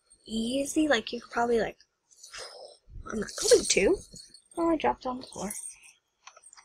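A young woman talks with animation, close to the microphone.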